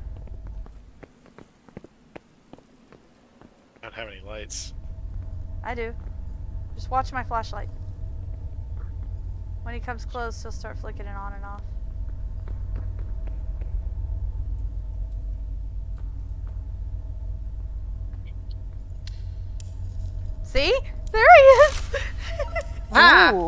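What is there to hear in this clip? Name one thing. Footsteps shuffle on a stone floor.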